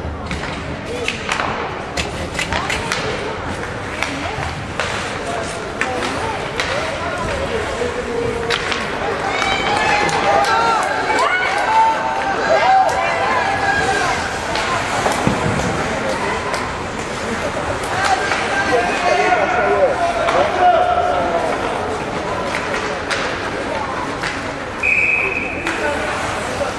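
Skates scrape and hiss across ice in a large echoing rink.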